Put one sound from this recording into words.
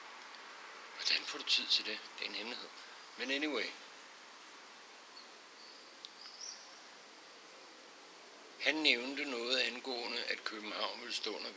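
A middle-aged man talks close by with animation, in pauses.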